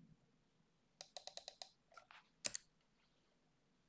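Keys clack quickly on a computer keyboard.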